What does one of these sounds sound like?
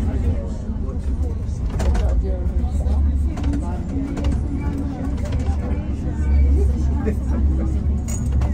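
A tram rumbles past close by.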